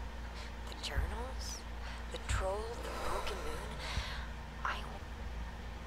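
A young woman speaks quietly into a microphone.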